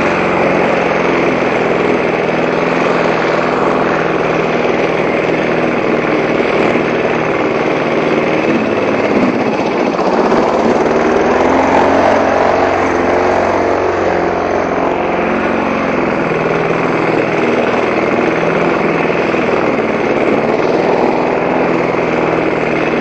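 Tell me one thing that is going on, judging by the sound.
A petrol lawn mower engine drones loudly and steadily up close.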